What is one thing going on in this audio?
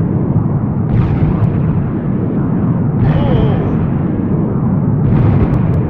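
A shotgun fires in heavy blasts.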